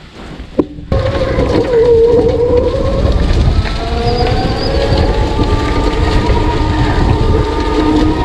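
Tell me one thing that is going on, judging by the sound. An electric motor whines as a small kart drives along.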